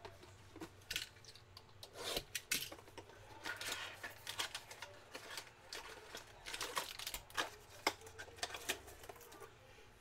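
Plastic wrap crinkles and rustles as hands handle a box up close.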